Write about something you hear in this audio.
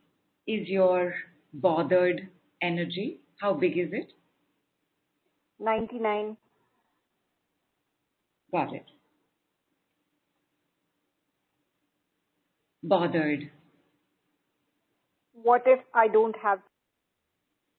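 A woman speaks calmly into a microphone, with long pauses.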